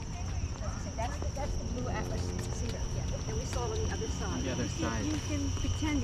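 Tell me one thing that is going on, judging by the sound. People talk nearby outdoors.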